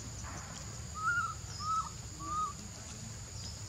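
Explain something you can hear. A baby monkey squeals in short, high cries.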